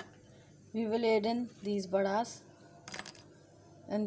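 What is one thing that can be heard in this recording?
A fried fritter drops softly into a glass bowl.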